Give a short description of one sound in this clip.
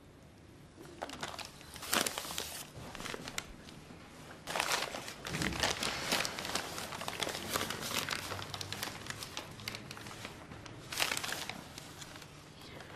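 Newspaper pages rustle.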